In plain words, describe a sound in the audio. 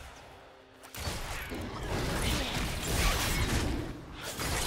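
Game combat effects clash and crackle.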